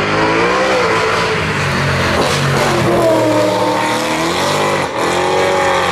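A racing car passes close by at speed.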